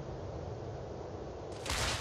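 Shells explode on impact with a distant rumble.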